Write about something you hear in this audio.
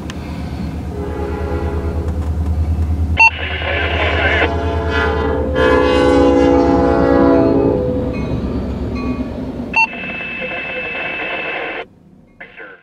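A train horn blasts loudly several times.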